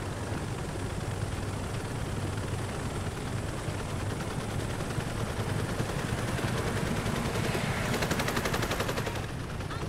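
A helicopter's rotor drones steadily and grows louder nearby.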